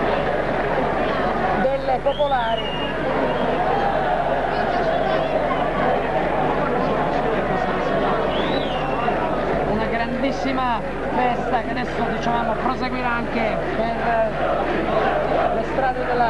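A large crowd cheers and chants loudly in an open stadium.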